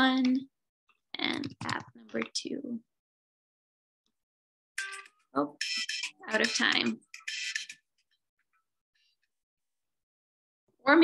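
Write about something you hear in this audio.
A young woman speaks calmly over an online call, in short bursts with pauses.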